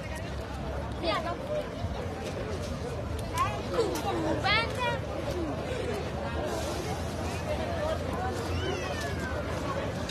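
People in a crowd whistle loudly.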